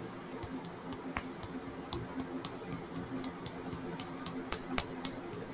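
A small bottle cap clicks and taps in fingers.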